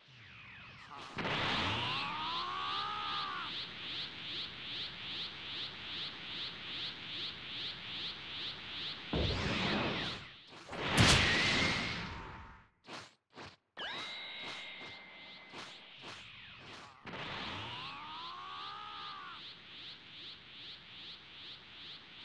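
A charging power aura hums with a quick, even pulsing.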